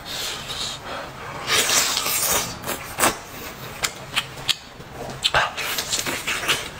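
A young man slurps and chews food noisily, close up.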